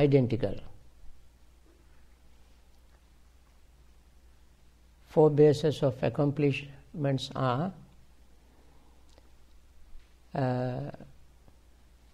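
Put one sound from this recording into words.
An elderly man speaks calmly and close by, in short bursts with pauses.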